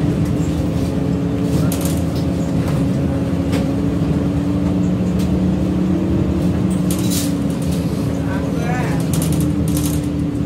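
A bus engine hums and drones steadily from inside the cabin.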